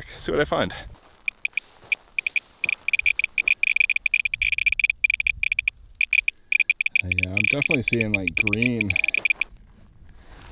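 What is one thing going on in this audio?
A handheld meter clicks rapidly.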